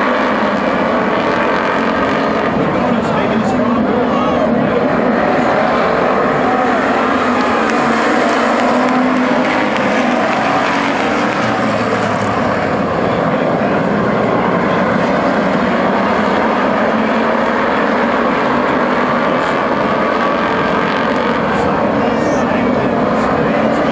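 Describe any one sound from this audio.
Engines rev up and down as the cars take the turns.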